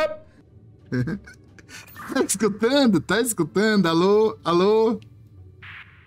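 A man laughs loudly and heartily over an online call.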